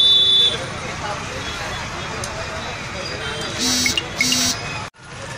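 Oil sizzles in a frying pan.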